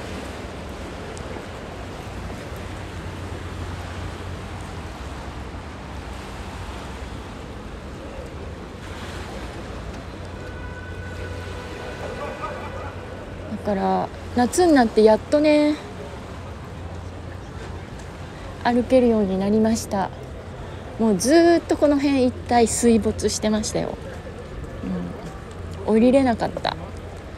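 Water laps and churns along a river.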